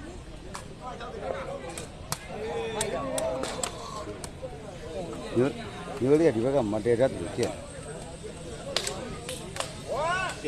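A crowd of men shouts and cheers outdoors nearby.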